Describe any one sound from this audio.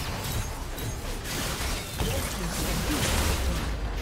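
A tower in a game crumbles and explodes.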